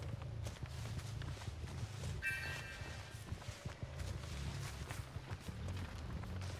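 Footsteps crunch and rustle through dry cornstalks.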